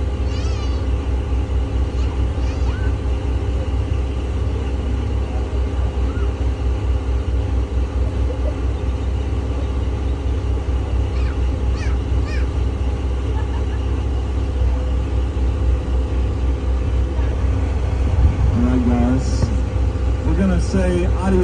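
A boat engine rumbles steadily.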